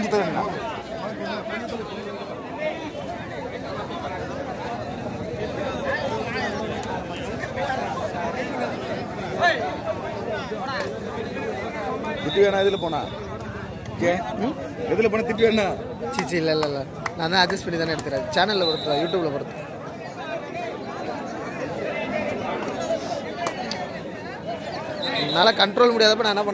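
A large outdoor crowd chatters and shouts.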